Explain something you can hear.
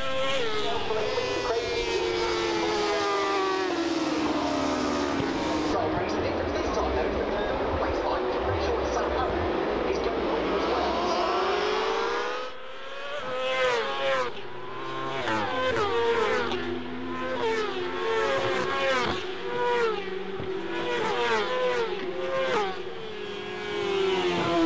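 Racing motorcycle engines roar and whine as the bikes speed past.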